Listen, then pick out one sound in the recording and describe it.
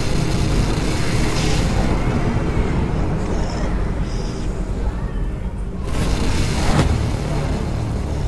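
Loud static hisses and crackles in bursts.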